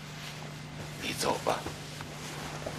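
An elderly man speaks in a strained, shaky voice.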